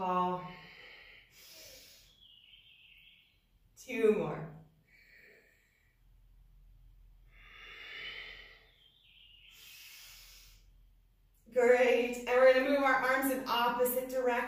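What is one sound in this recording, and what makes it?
A woman speaks calmly close by, with pauses.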